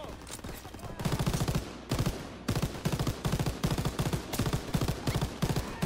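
A machine gun fires rapid, loud bursts.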